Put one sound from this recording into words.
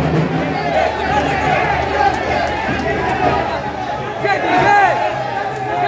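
A crowd of men shouts and cheers loudly close by.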